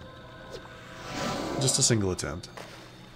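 A magical spell whooshes and shimmers.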